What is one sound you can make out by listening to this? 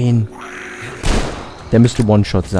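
A shotgun fires a single loud blast.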